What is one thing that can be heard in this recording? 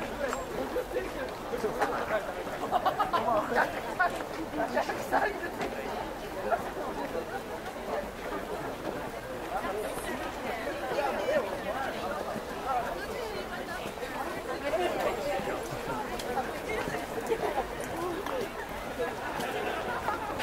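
A crowd of men and women chatters and murmurs nearby outdoors.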